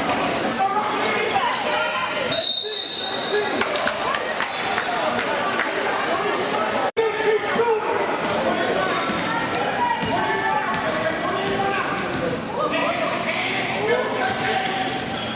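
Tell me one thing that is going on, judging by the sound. A crowd of voices chatters and calls out in a large echoing gym.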